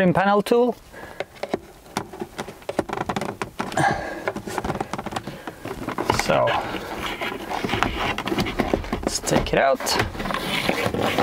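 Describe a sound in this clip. Plastic parts click and scrape as a dashboard panel is pried loose.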